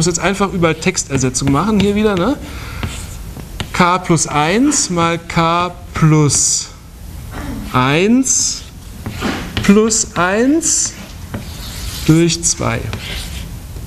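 A woman speaks calmly, as if lecturing, close by.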